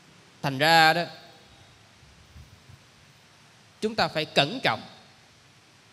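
A young man speaks calmly into a microphone, in short bursts with pauses.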